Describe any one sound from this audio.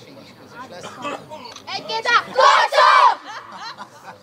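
A group of young boys shout a loud team cheer together outdoors.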